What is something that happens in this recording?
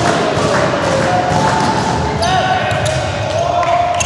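A volleyball is struck hard with a sharp slap.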